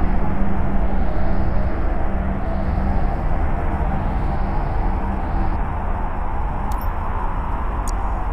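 A deep spaceship engine drone hums steadily.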